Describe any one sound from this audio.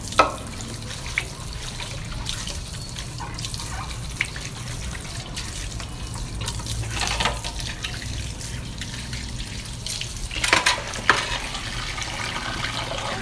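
Dishes clatter and clink as they are washed.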